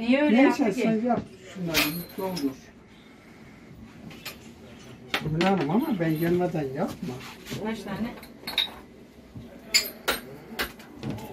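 Metal objects clink and knock as they are handled.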